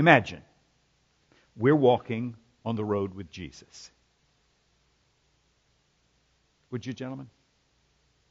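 A man speaks calmly into a microphone, with pauses, in a large hall.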